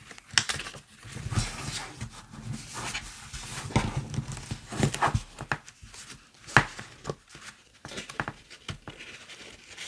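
Paper cards rustle and flap as hands fold and turn them.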